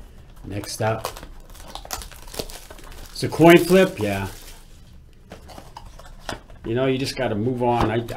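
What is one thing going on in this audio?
Cardboard and plastic wrapping rustle and crinkle in hands.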